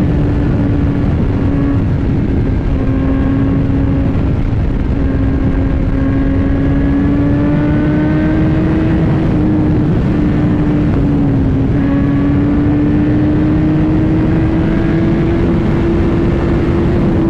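Wind rushes loudly over a microphone at speed.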